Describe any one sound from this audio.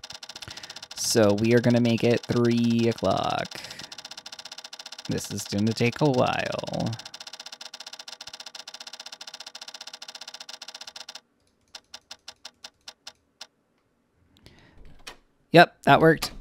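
A young man speaks into a nearby microphone with animation, in short bursts.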